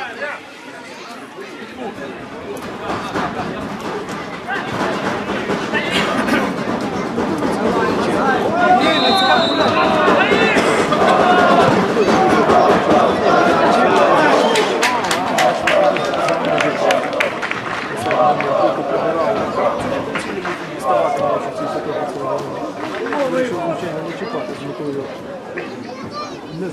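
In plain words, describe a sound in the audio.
A crowd murmurs outdoors and swells into loud cheering.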